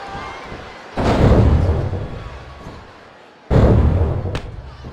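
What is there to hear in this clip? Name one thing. Heavy bodies slam onto a wrestling mat with loud booming thuds.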